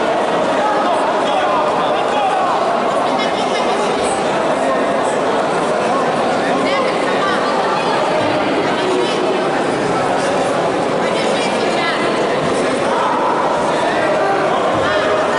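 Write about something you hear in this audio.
A crowd chatters and calls out throughout a large echoing hall.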